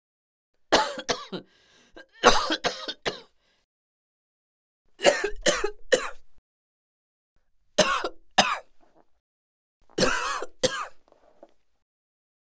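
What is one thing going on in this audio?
A boy coughs in harsh bursts.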